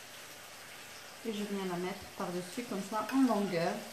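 A spoon scrapes filling out of a bowl.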